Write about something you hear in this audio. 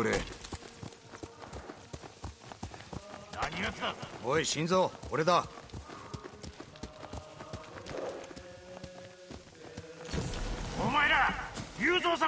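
Horse hooves clop slowly on soft ground.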